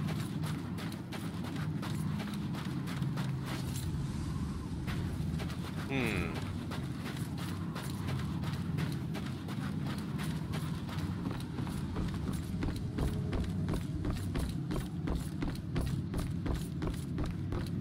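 Footsteps run quickly on dirt and wooden boards.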